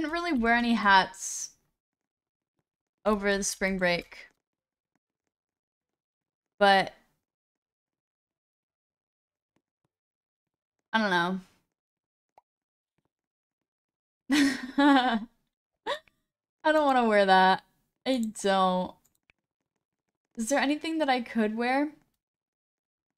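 A young woman talks with animation into a close microphone, in short bursts.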